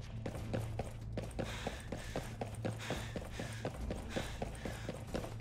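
Footsteps thud quickly and evenly on a hard floor.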